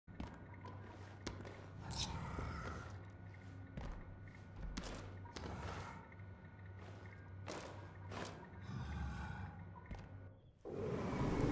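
Soft whooshes and metal clinks sound now and then.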